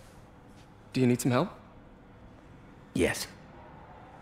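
A middle-aged man speaks briefly nearby.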